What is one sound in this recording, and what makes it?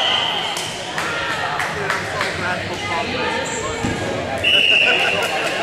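Balls bounce and thud on a hard floor in a large echoing hall.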